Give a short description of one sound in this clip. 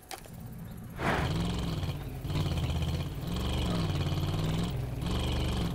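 A car engine starts up and runs with a low hum.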